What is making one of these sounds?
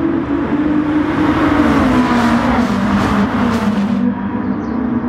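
A car whooshes past with a rising roar that fades.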